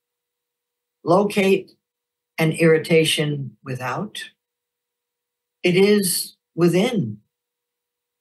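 An older woman reads aloud in short, calm phrases into a close microphone.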